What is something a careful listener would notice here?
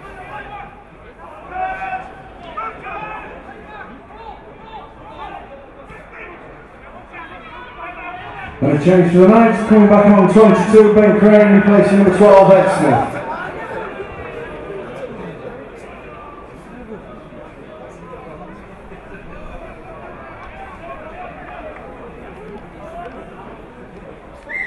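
Spectators murmur and call out in the open air.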